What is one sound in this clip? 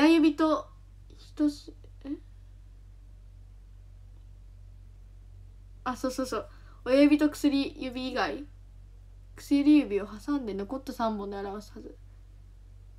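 A young girl speaks softly and close to a microphone, in short bursts with pauses.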